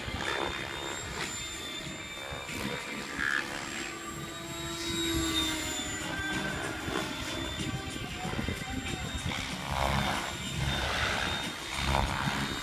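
A model helicopter's engine whines steadily as it flies overhead.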